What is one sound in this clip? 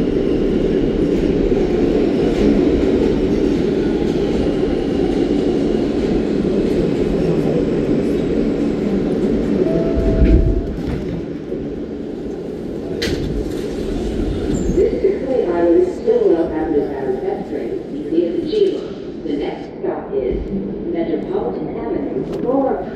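A train rumbles loudly along the tracks, then slows and quietens.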